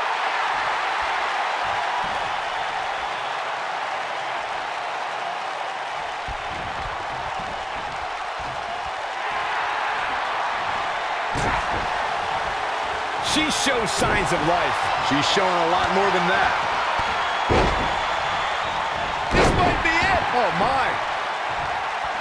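A large arena crowd cheers and murmurs.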